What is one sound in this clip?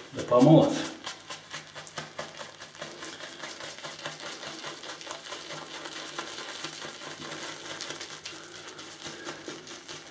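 A shaving brush swishes and scrubs rapidly in a tub of soap.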